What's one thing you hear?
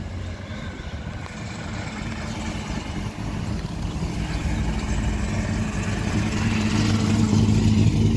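A powerful car engine rumbles loudly and grows louder as the car comes close.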